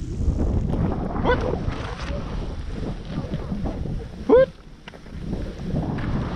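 Skis swish and hiss through deep soft snow.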